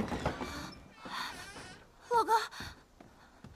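A young woman calls out loudly and anxiously.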